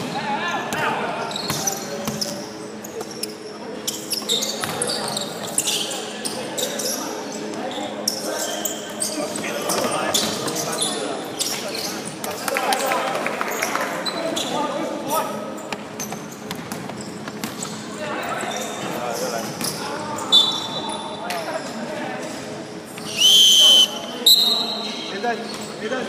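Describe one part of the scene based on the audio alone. Young men shout to each other across an echoing hall.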